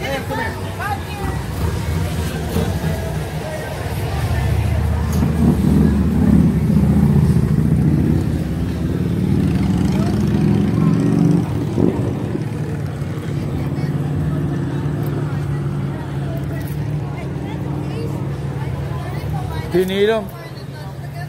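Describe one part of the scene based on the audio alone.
Several young adults talk and shout excitedly close by.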